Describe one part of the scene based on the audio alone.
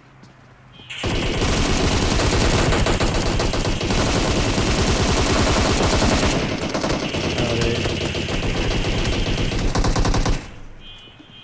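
Automatic rifle fire rattles in fast bursts.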